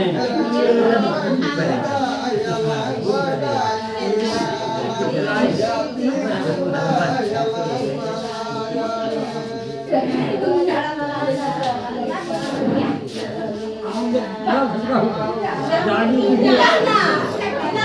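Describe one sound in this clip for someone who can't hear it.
A crowd of men and women talk and murmur all around outdoors.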